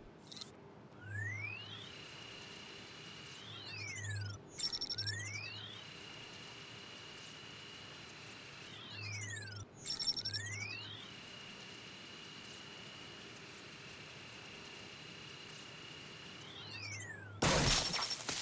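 A handheld electronic scanner emits rising and falling tones with a steady beep between sweeps.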